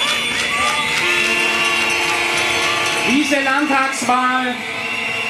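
A young man speaks into a microphone, amplified over loudspeakers outdoors.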